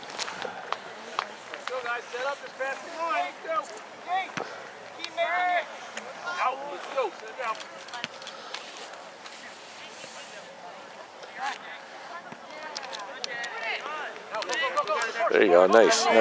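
Young players shout to each other across an open field outdoors.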